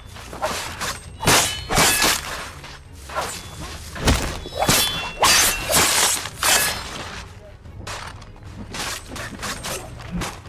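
Footsteps crunch on dry dirt.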